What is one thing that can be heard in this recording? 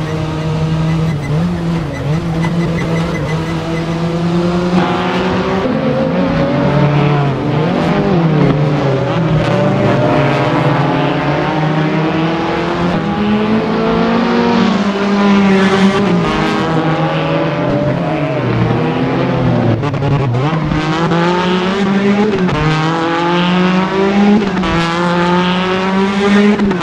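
A racing car engine revs hard, rising and falling in pitch as the gears shift.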